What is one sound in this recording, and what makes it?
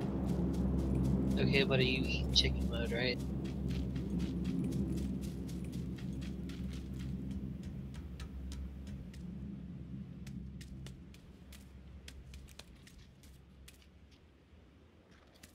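Footsteps tread steadily.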